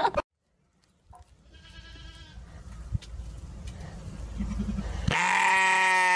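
A sheep bleats close by.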